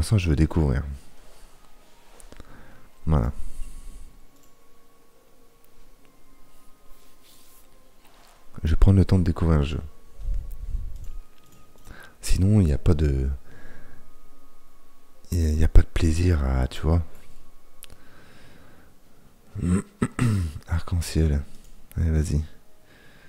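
A man talks calmly into a close microphone, in bursts with pauses.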